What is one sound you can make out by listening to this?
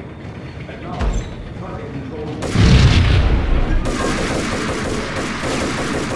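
An automatic rifle fires rapid bursts in an echoing space.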